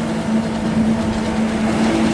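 A truck engine rumbles close by.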